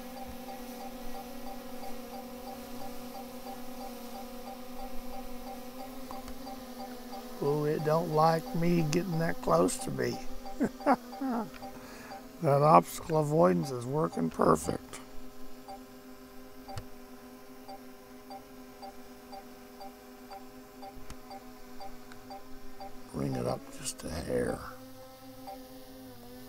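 A drone's propellers hum steadily.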